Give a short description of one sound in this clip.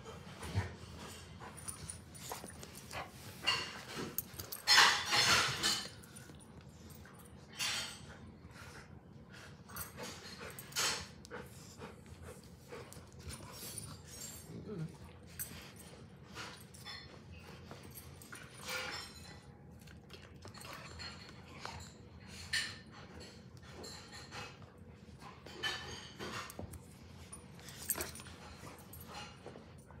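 Two dogs growl and grumble playfully while wrestling close by.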